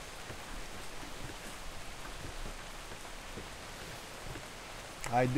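Footsteps thud on a wooden deck.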